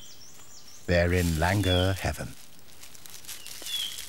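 Branches rustle as a monkey leaps through a tree.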